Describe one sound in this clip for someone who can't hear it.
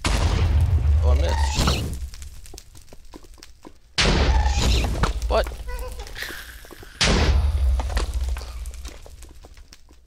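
Fireballs explode with loud booms that rumble away.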